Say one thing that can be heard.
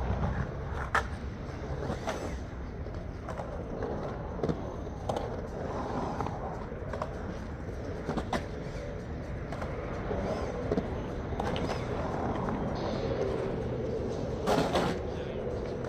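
A skateboard clacks sharply against concrete.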